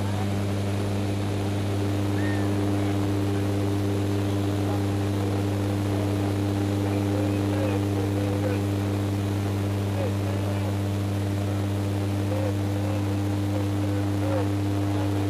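An aircraft engine drones steadily and loudly.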